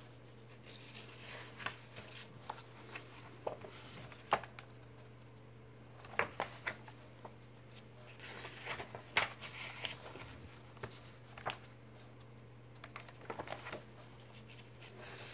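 Paper pages rustle and flip close by.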